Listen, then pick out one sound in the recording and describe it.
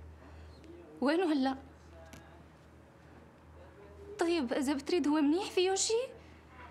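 A young woman speaks anxiously and close by.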